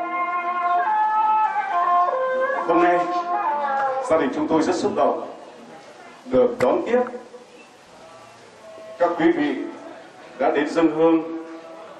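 A group of men and women chant a prayer together in a sing-song voice, in short bursts with pauses.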